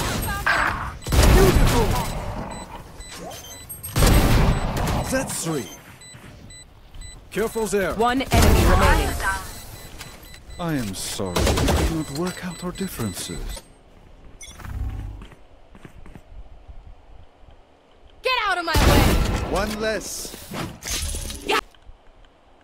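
Video game gunshots crack in short bursts.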